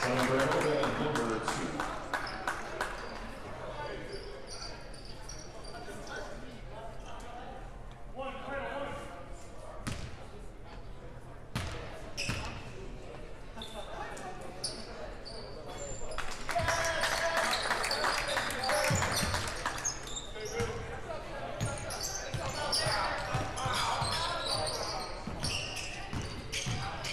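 A crowd of spectators chatters and cheers.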